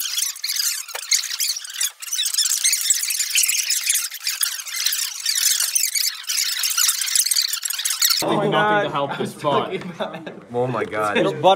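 A group of teenagers chatter and laugh nearby.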